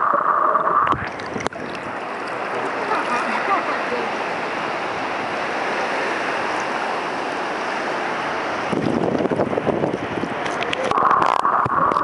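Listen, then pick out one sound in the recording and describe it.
Water laps and splashes at the surface in the open air.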